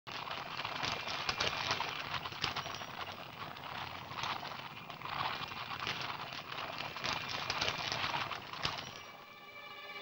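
Horses' hooves clop on the ground at a trot.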